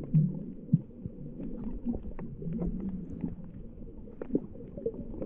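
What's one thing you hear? Water gurgles and rumbles in a muffled way underwater.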